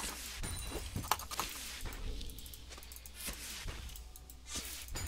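Game spell effects and weapon hits crackle and thud in quick bursts.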